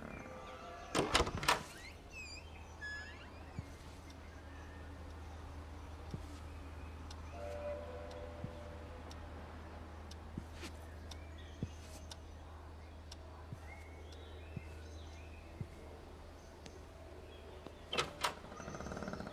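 A wooden door swings open with a knock and creak.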